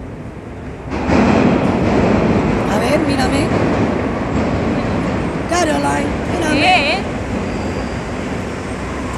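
A young woman talks close by over loud noise.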